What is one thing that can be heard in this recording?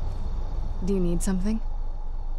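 A woman speaks briefly.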